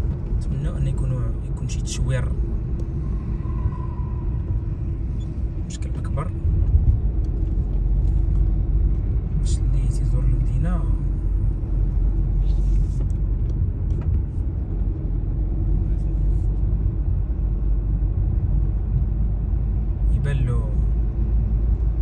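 Tyres roll over smooth asphalt with a low rumble.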